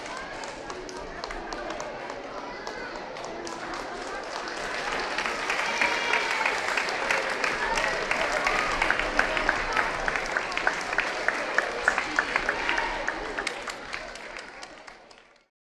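Dancers' shoes stamp and tap rhythmically on a wooden stage.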